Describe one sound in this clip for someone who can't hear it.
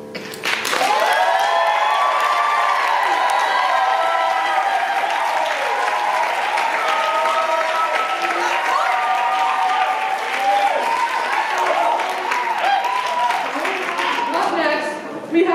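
An audience cheers and whoops loudly.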